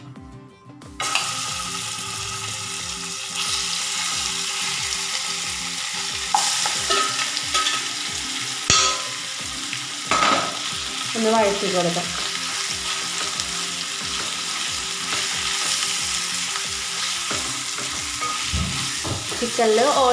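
Hot oil sizzles loudly as pieces of meat drop into a pan.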